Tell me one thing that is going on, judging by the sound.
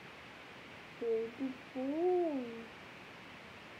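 A young girl speaks softly close by.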